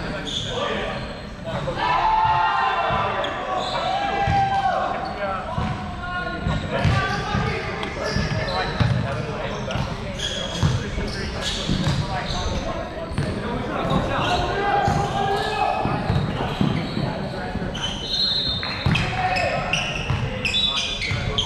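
Young men talk and call out loosely, echoing in a large hall.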